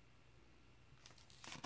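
A hand brushes and rustles across a glossy comic book page.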